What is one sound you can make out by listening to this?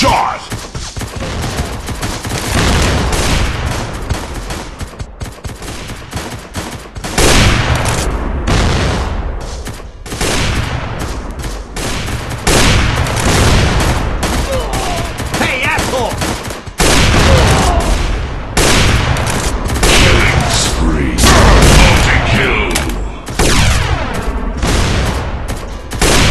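Gunshots crack out in loud bursts.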